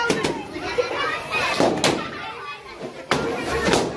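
A party popper bursts with a sharp bang.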